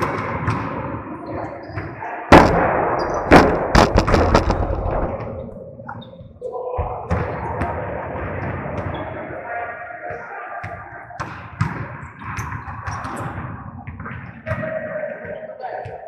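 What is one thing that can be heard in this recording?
Footsteps squeak and shuffle on a hard court.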